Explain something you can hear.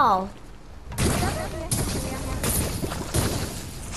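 Lava hisses and roars close by.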